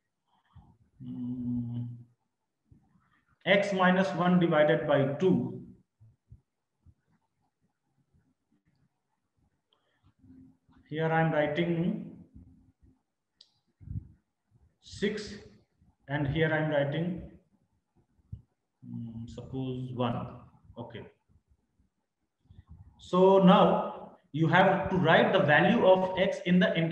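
A man explains calmly into a close microphone, in short bursts with pauses.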